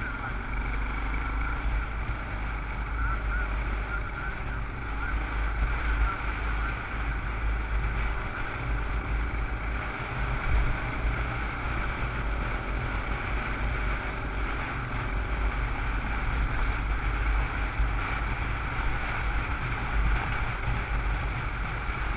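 A dirt bike engine hums steadily up close.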